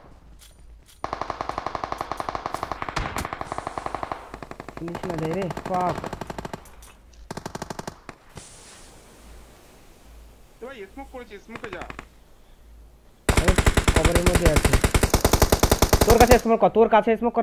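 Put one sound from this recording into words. Rapid automatic gunfire rattles in loud bursts.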